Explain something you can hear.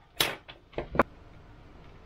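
Small plastic parts click and knock together as they are handled.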